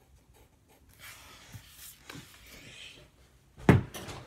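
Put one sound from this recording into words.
Paper rustles as a hand moves it.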